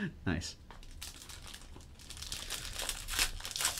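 A foil card pack crinkles as hands tear it open.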